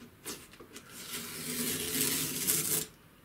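A paper towel is pulled off a roll with a rustling tear.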